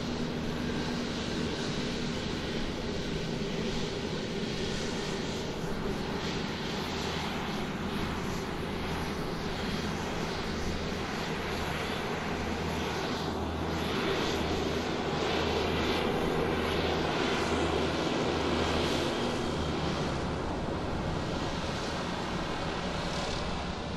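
A tow tractor's engine rumbles steadily as it pulls an airliner.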